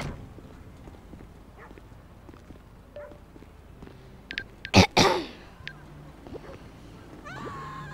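Footsteps climb wooden stairs.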